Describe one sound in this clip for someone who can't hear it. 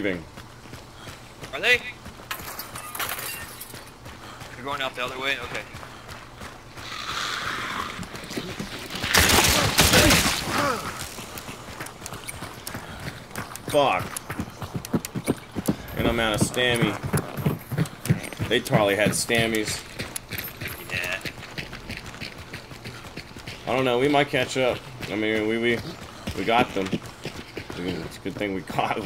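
Footsteps crunch steadily on dirt and wooden boards.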